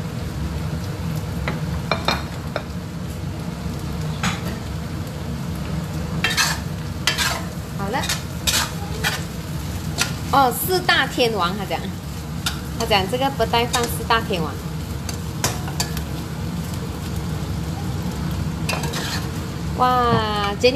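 Chopsticks clink against a metal pot.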